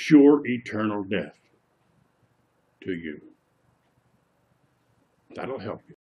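An elderly man speaks close by with animation, in short bursts.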